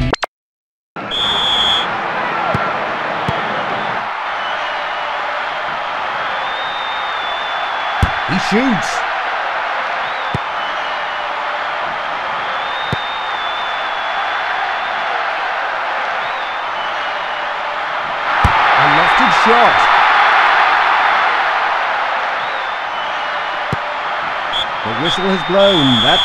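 A large stadium crowd roars steadily, then swells louder.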